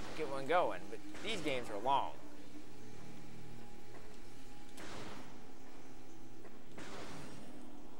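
A blaster fires with sharp, whooshing zaps.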